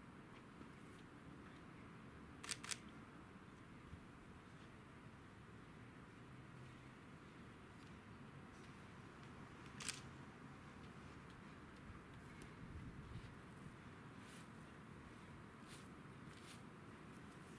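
Hands pat and rub on a sheet of paper, with soft scattered taps.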